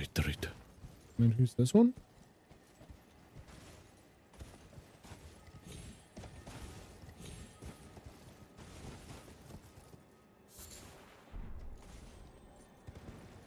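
Horse hooves clatter at a steady gallop.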